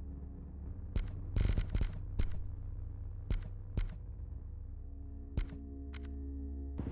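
Menu selections click sharply several times.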